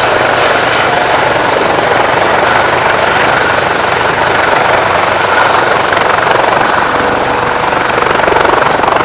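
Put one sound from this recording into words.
A helicopter hovers close by with a loud, steady whine and thumping rotor blades.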